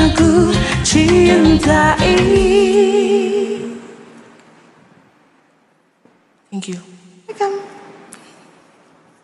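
A young man sings softly through a headset microphone.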